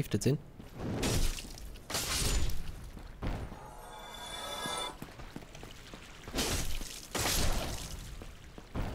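A blade swishes and strikes with a sharp hit.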